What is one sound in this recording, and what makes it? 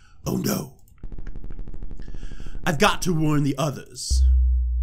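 A man speaks with animation into a headset microphone, close by.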